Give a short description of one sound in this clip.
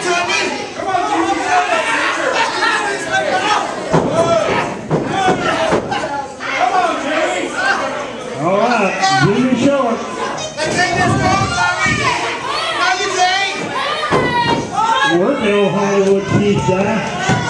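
A crowd of men and women chatters and shouts in a large echoing hall.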